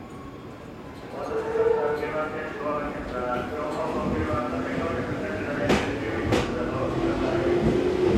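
An electric train pulls away with a rising motor whine and rumbling wheels.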